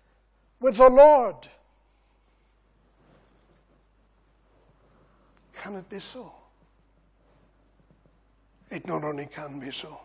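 An elderly man preaches forcefully into a microphone, with long pauses between phrases.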